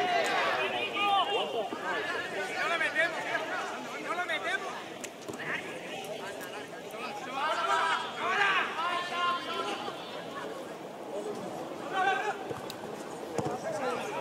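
Men shout to each other across an open field outdoors.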